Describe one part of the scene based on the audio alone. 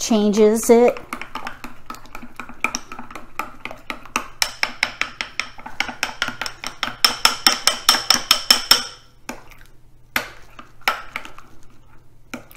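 A fork whisks quickly against a bowl, clinking rapidly.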